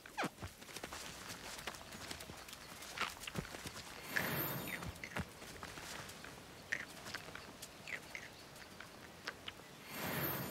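Small creatures chirp and squawk close by.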